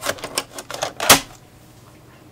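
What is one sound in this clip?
A plastic disk clicks into a drive.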